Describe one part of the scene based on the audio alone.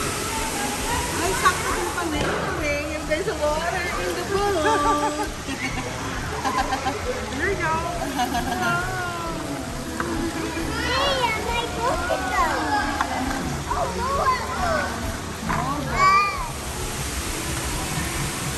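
A young girl talks and squeals with animation in an echoing hall.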